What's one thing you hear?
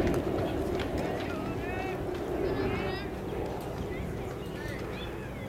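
Young players chatter and call out at a distance outdoors.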